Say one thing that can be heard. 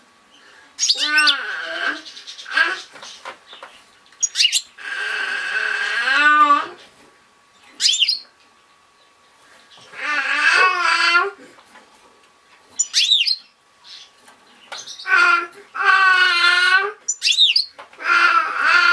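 A goldfinch sings a bright, twittering song in bursts.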